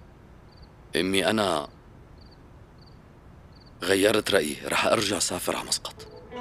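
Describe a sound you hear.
A middle-aged man speaks calmly and earnestly close by.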